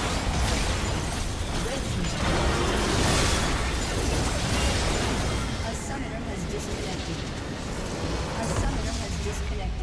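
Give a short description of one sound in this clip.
Spells and blows clash in a hectic video game battle.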